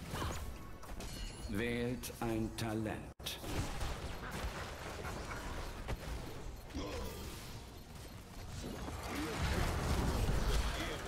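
Game spells and weapons clash and crackle in a busy fight.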